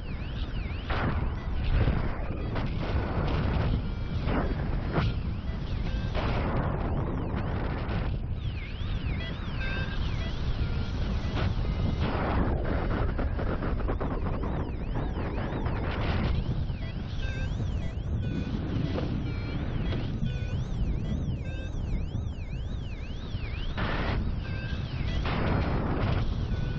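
Strong wind rushes and buffets steadily, outdoors high in the air.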